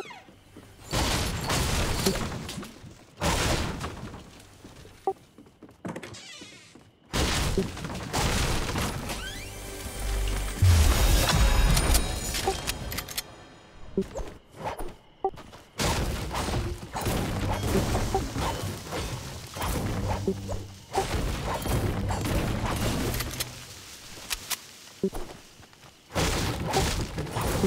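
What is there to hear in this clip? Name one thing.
A pickaxe strikes wood and stone with repeated sharp knocks.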